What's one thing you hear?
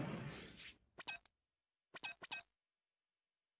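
Soft menu clicks tick in a video game.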